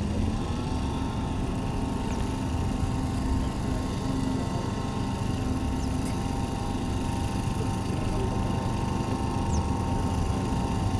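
An off-road vehicle's engine rumbles steadily as it drives through tall grass.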